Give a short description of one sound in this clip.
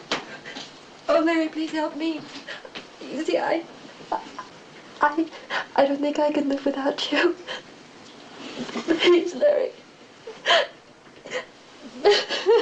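A young woman pleads tearfully and emotionally, close by.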